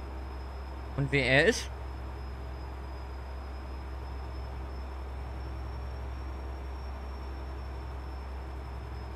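A truck engine hums steadily at cruising speed.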